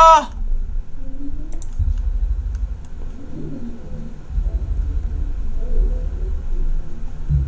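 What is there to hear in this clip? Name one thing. A young man speaks quietly into a close microphone.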